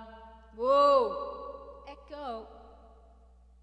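A woman sings a long note into a microphone.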